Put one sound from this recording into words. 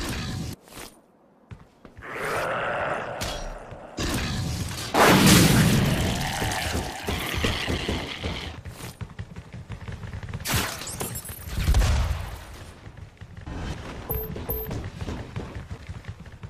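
Weapons fire in short bursts.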